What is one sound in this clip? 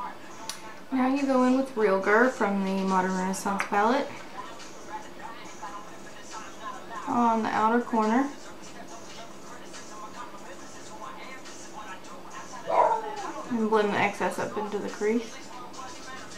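A young woman speaks softly and calmly close to a microphone.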